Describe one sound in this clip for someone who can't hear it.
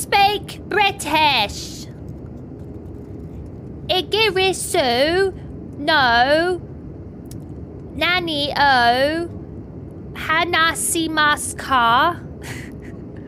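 A young woman speaks with lively, sing-song rises and falls close to a microphone.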